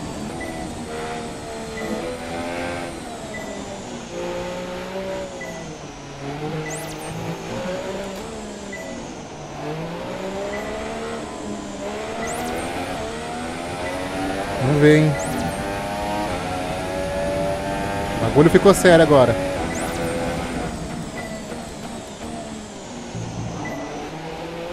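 A racing car engine whines and revs up and down through the gears.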